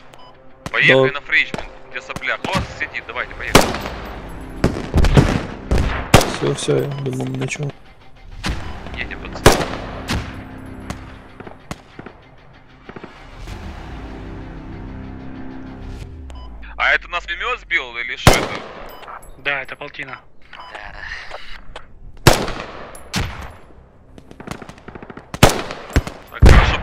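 Gunfire and explosions crack and boom in the distance, again and again.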